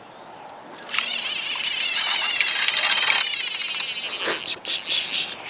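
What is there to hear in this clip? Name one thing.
A fishing reel whirs as line is pulled out.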